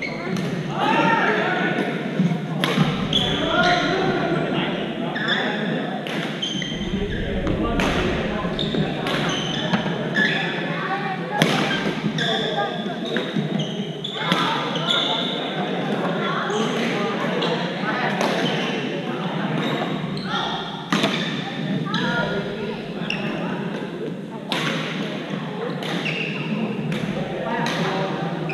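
Shoes squeak and thud on a hard court floor.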